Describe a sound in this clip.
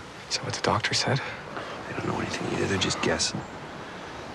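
A teenage boy speaks tensely, close by.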